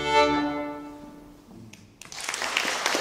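A final chord rings out from string instruments and an accordion and slowly fades.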